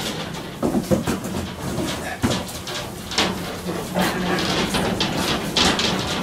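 A metal stool clanks and creaks as a person steps up onto it.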